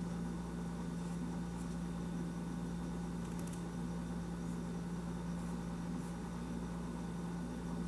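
A paintbrush dabs softly on cloth.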